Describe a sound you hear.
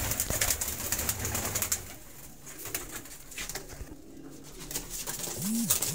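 Pigeon wings flap and clatter in a burst.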